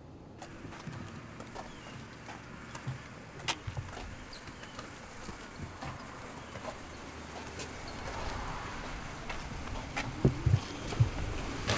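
Footsteps scuff on pavement.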